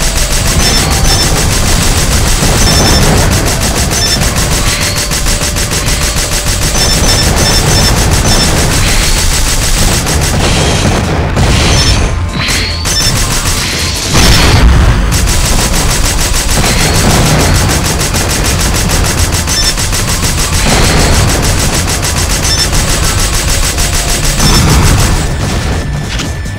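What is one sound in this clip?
Explosions boom and crackle again and again.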